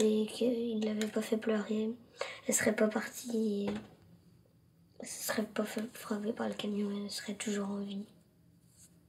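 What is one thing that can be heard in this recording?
A young girl speaks softly and tearfully up close.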